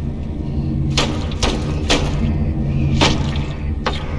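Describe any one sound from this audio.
A knife chops into meat on a wooden board.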